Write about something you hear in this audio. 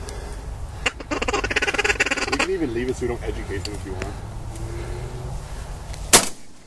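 A flock of geese honks overhead.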